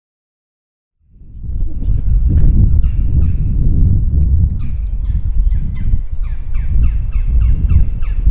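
Wind blows loudly outdoors with a low rumble.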